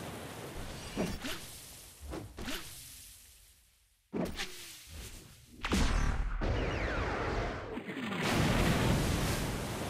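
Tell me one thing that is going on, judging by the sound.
Heavy blows thud and crash.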